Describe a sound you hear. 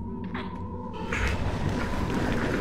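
A heavy wooden chest scrapes across the floor.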